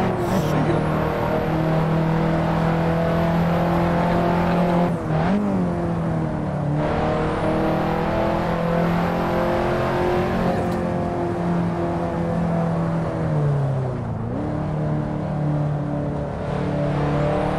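A car engine drones loudly, its pitch dipping at gear changes and rising again as it accelerates.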